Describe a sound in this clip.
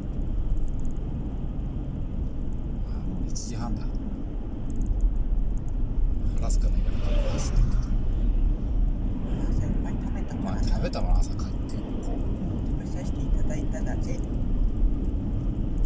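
A car engine hums steadily with low road rumble from inside the car.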